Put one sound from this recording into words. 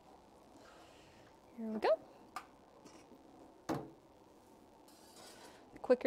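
A metal kiln door clunks open and shut.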